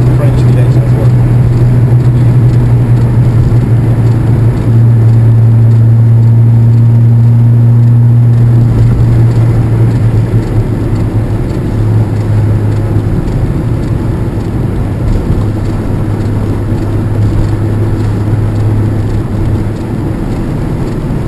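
A car engine drones steadily close by.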